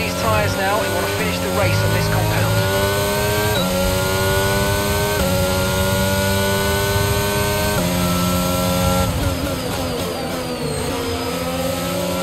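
A racing car engine screams at high revs, climbing in pitch and dropping briefly with each quick gear change.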